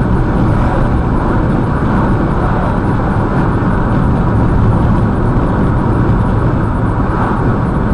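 Oncoming vehicles whoosh past.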